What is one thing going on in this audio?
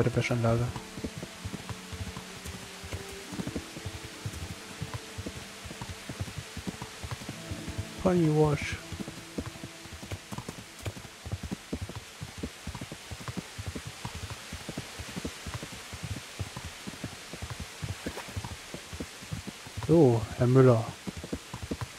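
A horse neighs and snorts several times.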